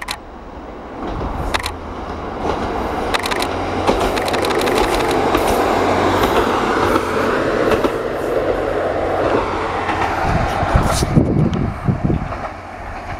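A diesel train rumbles past close by, growing louder as it nears.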